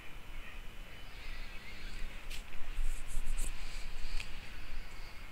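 A paintbrush dabs and scratches against a canvas.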